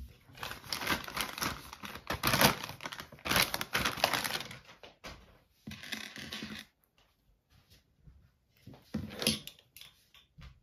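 Small objects clatter as they are set down on a hard surface.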